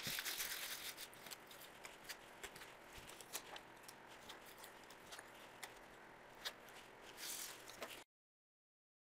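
Plastic cards tap and rustle as they are handled.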